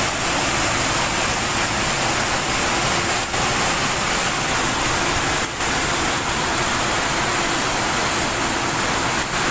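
Floodwater rushes and roars loudly through a street.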